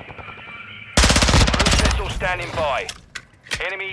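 A rifle fires a rapid burst of shots up close.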